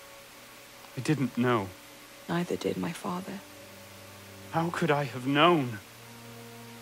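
A man speaks calmly and quietly.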